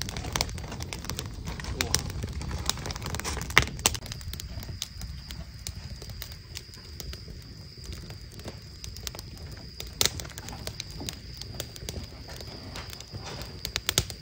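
Small objects tap and click on a table.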